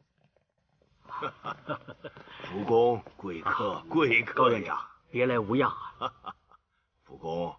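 A man speaks warmly and with animation, close by.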